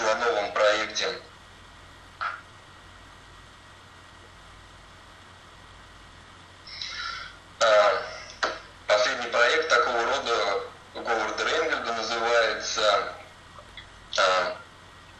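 A young man speaks calmly through a webcam microphone, heard as over an online call.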